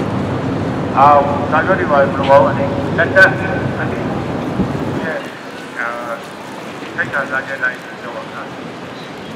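A woman calls out loudly in the open air, some distance away.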